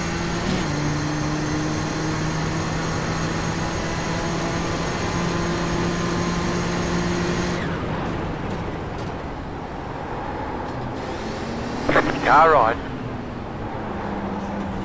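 A racing car engine drones steadily, then drops in pitch as the car slows.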